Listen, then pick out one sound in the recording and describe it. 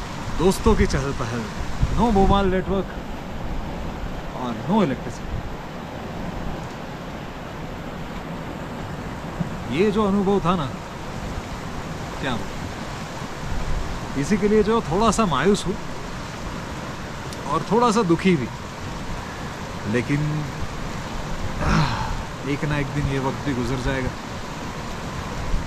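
A young man speaks calmly nearby in bursts with pauses.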